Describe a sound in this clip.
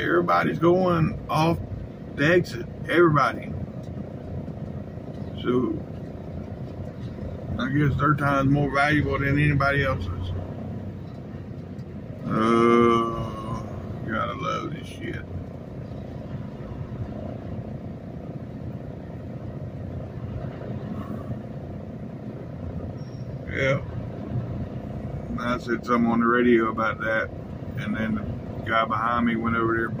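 A large truck engine rumbles steadily inside the cab.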